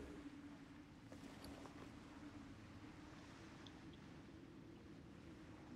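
Footsteps splash softly through shallow water.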